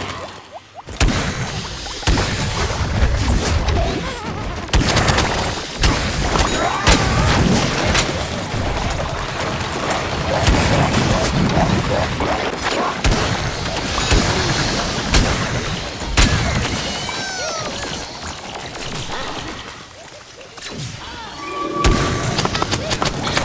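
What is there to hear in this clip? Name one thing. Blasts and explosions boom sharply.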